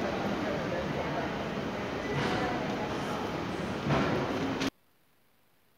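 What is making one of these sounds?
Footsteps echo in a large hall.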